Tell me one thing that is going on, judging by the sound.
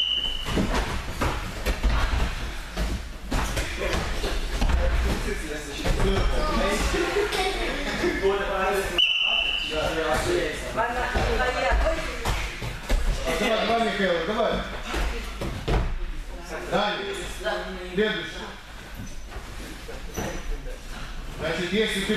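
Young people talk and call out in an echoing hall.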